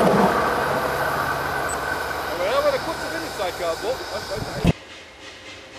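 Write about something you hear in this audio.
A small locomotive rumbles across a bridge nearby.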